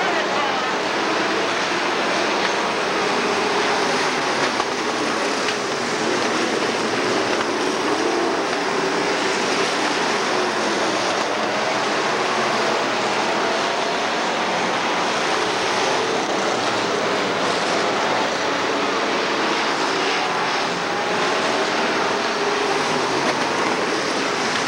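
Race car engines roar loudly as they speed past.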